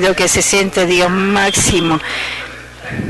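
A man speaks loudly through a microphone in a large hall.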